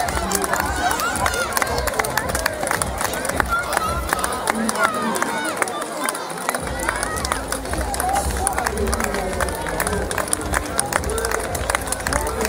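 Spectators clap their hands.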